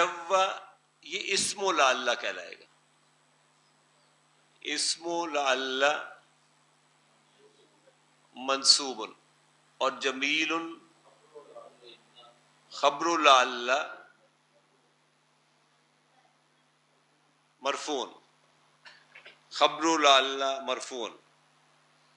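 An elderly man speaks calmly through a close microphone, in short phrases with pauses.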